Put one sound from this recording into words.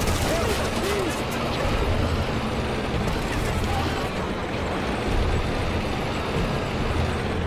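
A tank engine rumbles steadily as it drives.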